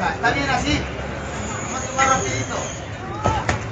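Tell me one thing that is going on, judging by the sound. Boxing gloves thud against each other.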